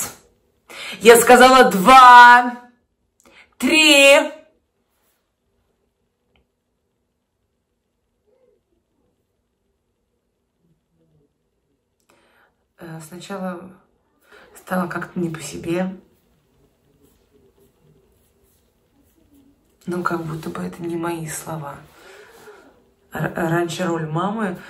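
A young woman talks close by, calmly and with long pauses.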